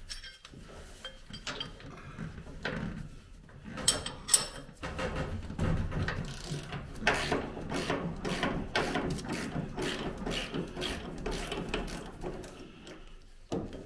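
A wrench clicks and scrapes against a metal bolt.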